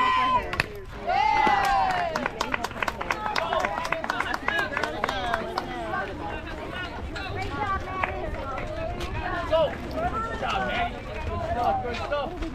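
Young women shout and call out with excitement.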